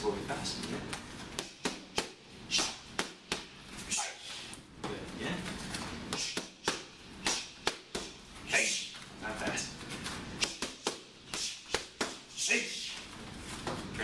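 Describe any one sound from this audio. Gloved punches and kicks smack sharply against pads in quick bursts.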